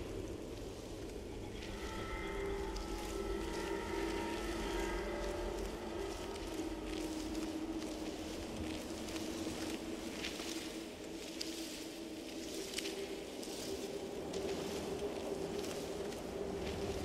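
Footsteps tread on a stone floor.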